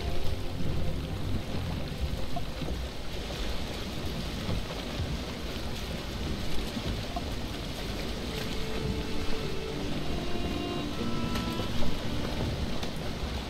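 Wind blows steadily across open water.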